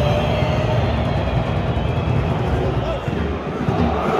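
Fans nearby clap their hands in time.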